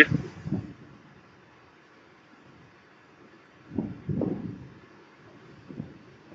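A man speaks calmly and closely into a microphone, in short phrases with pauses.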